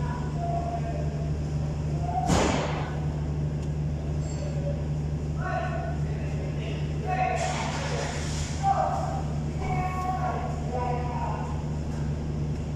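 An engine idles with a steady low hum, close by.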